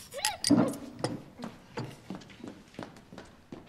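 Footsteps tap on a hard floor as a person walks away.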